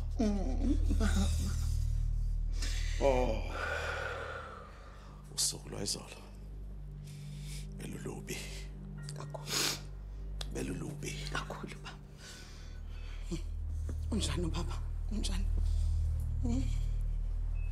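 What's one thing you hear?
A woman speaks softly and tenderly, close by.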